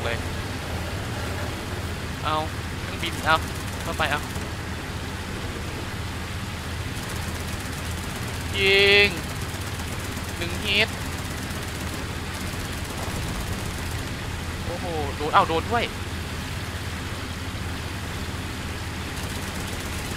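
A boat engine drones steadily.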